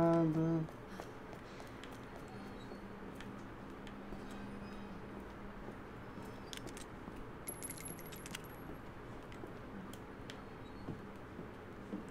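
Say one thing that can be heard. Footsteps thud softly on wooden stairs.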